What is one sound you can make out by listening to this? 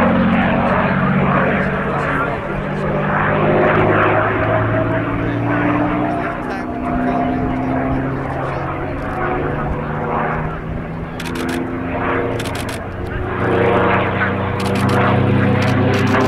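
A propeller plane's engine drones overhead, rising and falling in pitch as it passes.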